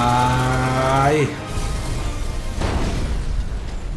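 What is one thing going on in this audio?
A loud explosion booms and crackles.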